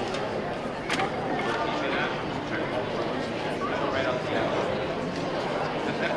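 An audience murmurs and chatters nearby.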